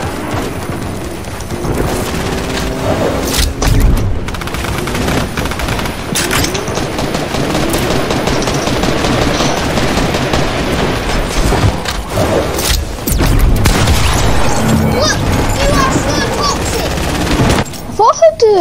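Gunshots and building noises from a video game crackle rapidly.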